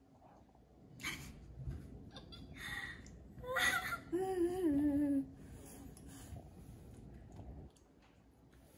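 A young woman talks softly and warmly nearby.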